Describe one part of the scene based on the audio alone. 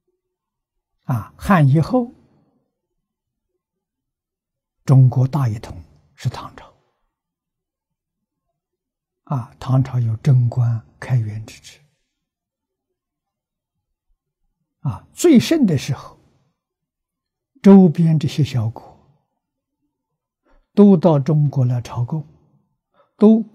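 An elderly man speaks calmly and slowly into a close microphone, in short phrases with long pauses.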